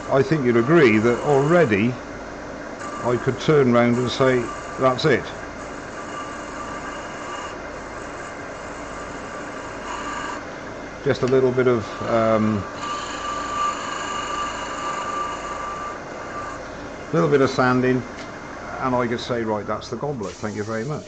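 A wood lathe hums steadily as it spins.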